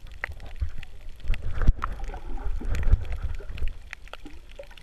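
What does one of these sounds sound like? A snorkeler breathes out bubbles underwater.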